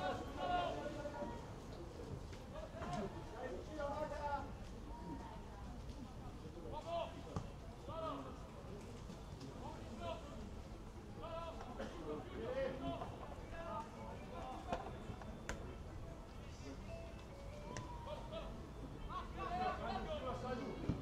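Spectators talk nearby.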